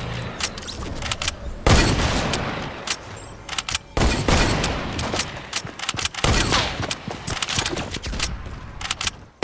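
Gunshots crack in quick, sharp bursts.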